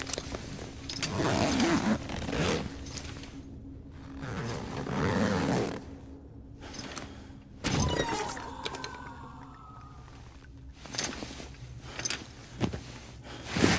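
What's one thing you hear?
Gear on a heavy backpack clanks and rattles.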